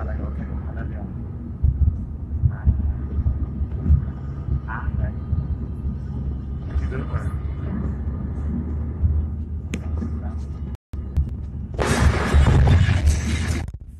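A young woman talks animatedly close to a phone microphone.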